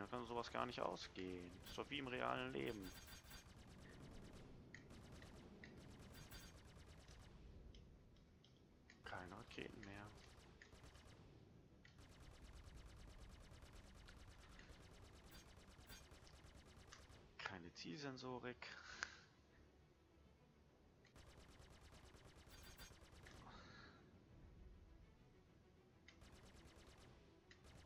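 Laser cannons fire in quick bursts.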